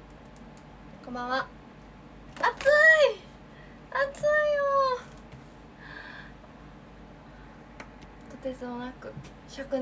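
A young woman talks animatedly close by, her voice rising in pitch.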